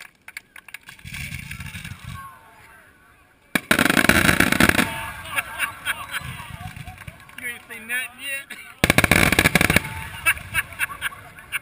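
Fireworks rockets whoosh and hiss as they launch.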